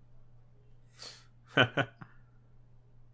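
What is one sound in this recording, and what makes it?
A young man laughs briefly through a headset microphone.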